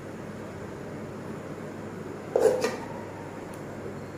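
A spoon scrapes rice onto a plate.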